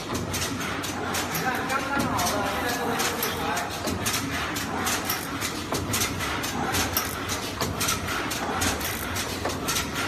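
A machine clicks and clatters rapidly as it runs.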